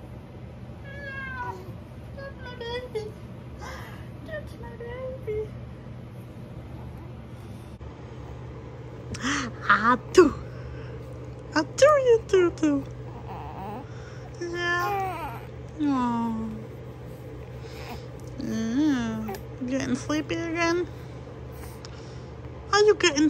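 A young woman talks softly and playfully close by.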